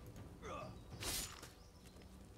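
A burst of hissing spray whooshes.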